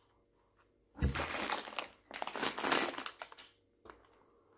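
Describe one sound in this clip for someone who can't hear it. A plastic snack bag crinkles and rustles in hands.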